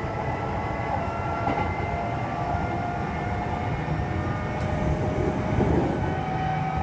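A train's motor whines with a steady high hum.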